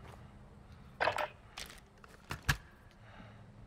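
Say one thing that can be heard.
A gun clicks and rattles as it is readied.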